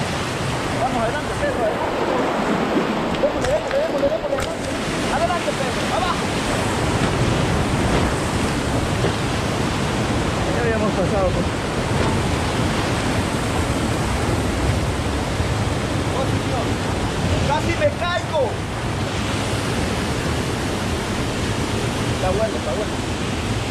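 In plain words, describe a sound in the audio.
Whitewater rushes loudly over rocks close by.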